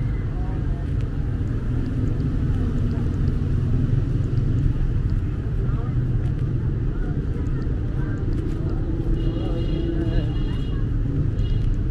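People chatter faintly in the distance.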